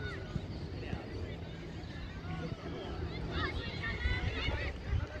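Children shout and call out across an open field.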